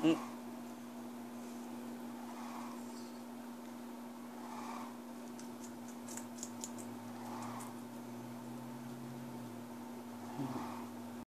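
A guinea pig crunches softly on food.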